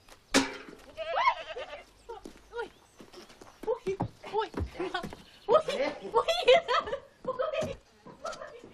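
A woman laughs and shrieks with excitement nearby.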